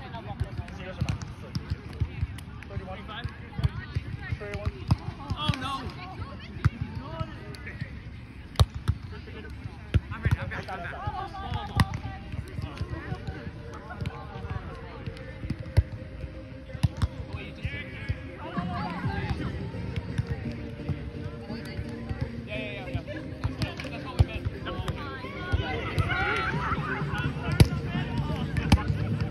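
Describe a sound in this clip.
Young adults call out and talk to each other across the court.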